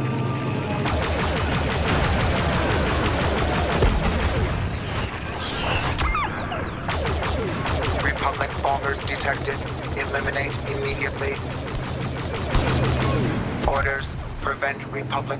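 Laser cannons fire in rapid bursts.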